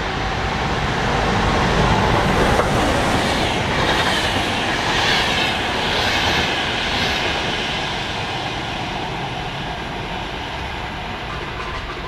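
A train approaches and rushes past loudly, then fades away.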